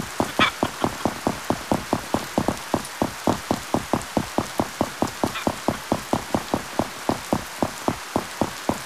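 Footsteps thud quickly and steadily on hard ground.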